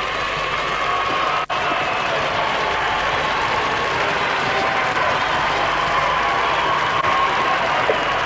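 A large crowd murmurs softly in a big echoing hall.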